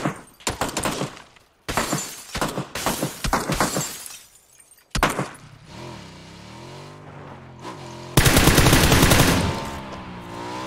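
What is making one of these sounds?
Rapid gunshots crack loudly in bursts.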